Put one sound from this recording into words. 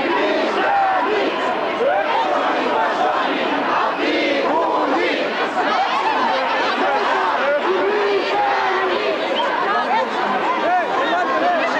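A large crowd of men and women shouts and chants loudly outdoors.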